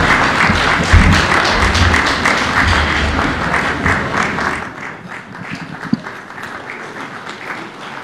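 A large crowd chatters and murmurs, loud at first and then quieter.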